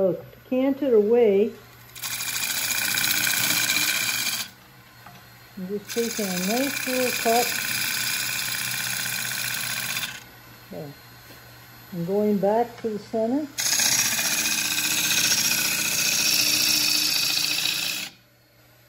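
A wood lathe spins steadily with a low motor hum.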